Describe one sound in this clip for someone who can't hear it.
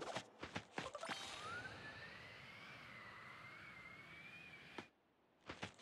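A rising whoosh sounds as a game character flies through the air.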